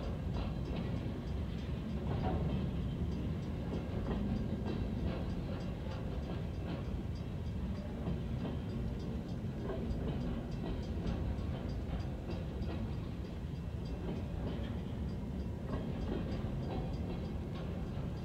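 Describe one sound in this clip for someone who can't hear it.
A freight train rumbles and clatters past close by.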